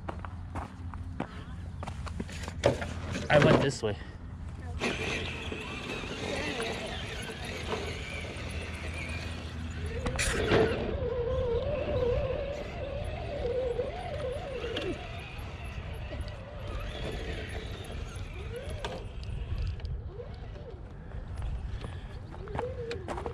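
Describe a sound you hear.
Plastic tyres crunch and scrape over loose stones.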